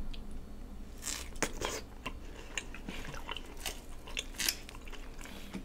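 Someone bites and chews food with wet, smacking clicks close to a microphone.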